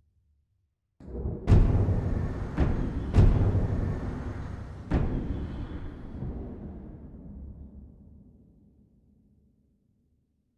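A deep, booming whoosh swells and slowly fades away.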